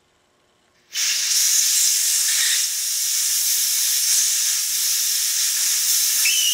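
Compressed air hisses loudly as it escapes.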